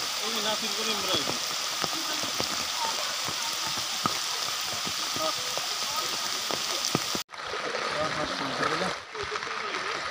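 Floodwater flows and rushes steadily.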